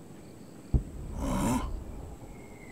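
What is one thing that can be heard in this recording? A man grunts a short questioning hum.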